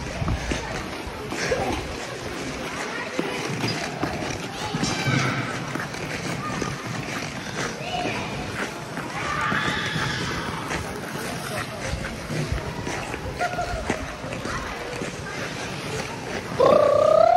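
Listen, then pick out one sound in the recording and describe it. Ice skate blades scrape and hiss across the ice.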